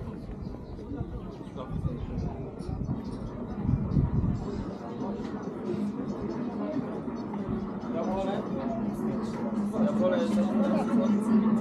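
Men and women chat in murmured voices nearby, outdoors.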